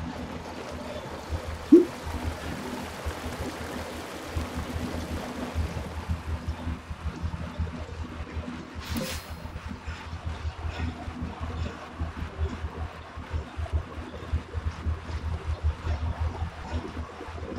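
A young woman talks casually into a nearby microphone.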